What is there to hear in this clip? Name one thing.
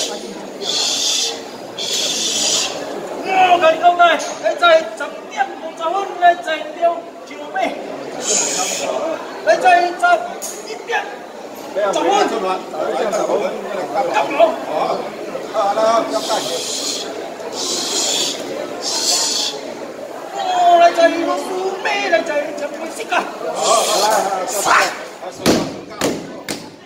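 Several men talk and murmur close by in a crowd.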